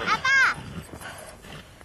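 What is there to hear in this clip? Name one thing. A horse whinnies nearby.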